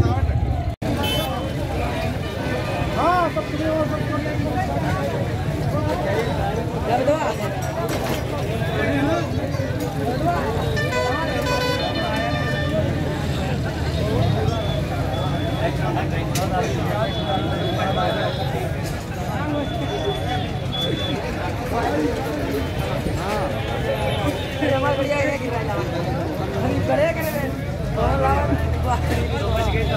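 A crowd of men talk and call out over one another outdoors.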